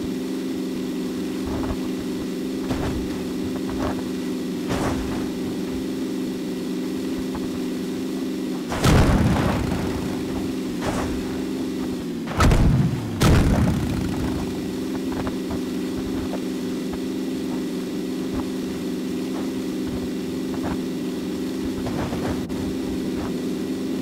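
A car engine hums steadily as the car drives over rough ground.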